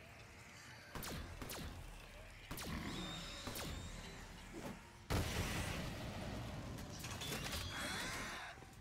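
Gunfire from a game crackles and bangs.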